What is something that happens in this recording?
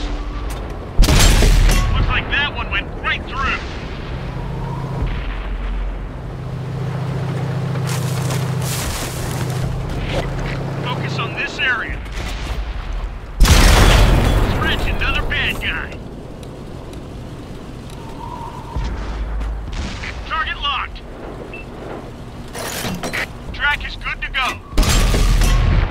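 A tank cannon fires with a loud, sharp boom.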